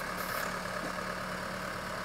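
Loose dirt spills from a tractor bucket.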